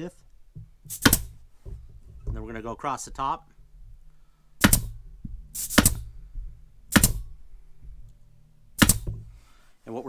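A nail gun fires with sharp, loud snaps.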